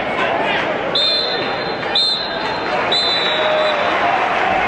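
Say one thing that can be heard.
A referee's whistle blows several sharp blasts.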